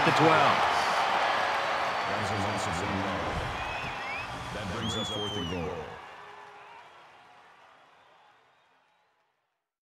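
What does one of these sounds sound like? A large stadium crowd cheers loudly, then slowly fades away.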